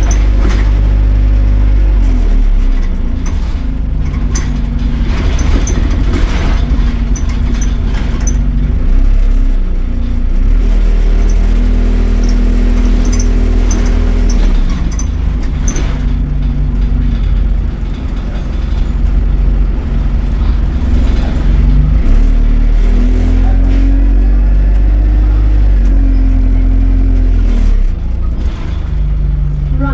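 The bus interior rattles and clatters over bumps.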